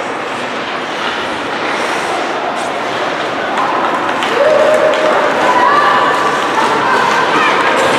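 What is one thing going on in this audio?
Spectators chatter and shout nearby.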